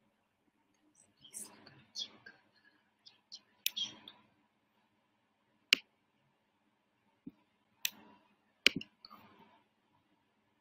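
A young woman speaks quietly through a microphone, in short bursts.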